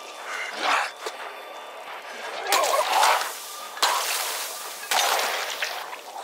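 A zombie groans and snarls close by.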